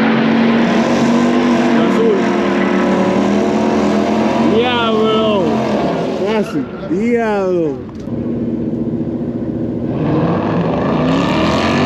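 A loud race car engine roars steadily nearby.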